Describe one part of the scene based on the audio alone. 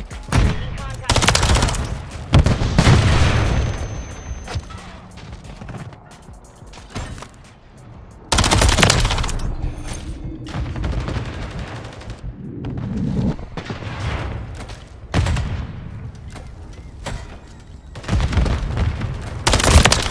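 Gunfire rattles in loud, sharp bursts.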